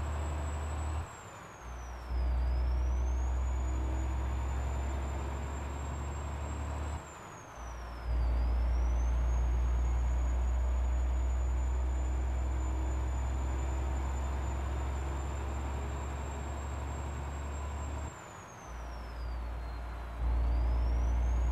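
A heavy truck engine drones steadily, dropping away briefly at each gear change.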